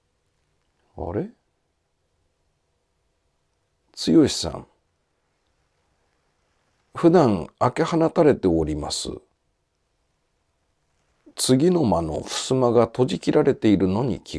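A man speaks close up in a dramatic, storytelling voice, with long pauses.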